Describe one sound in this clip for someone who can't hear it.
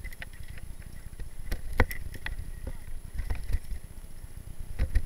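A bicycle's parts click and clatter over bumps.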